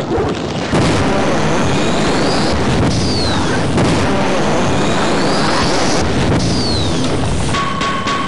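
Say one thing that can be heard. An energy weapon fires a crackling, buzzing beam.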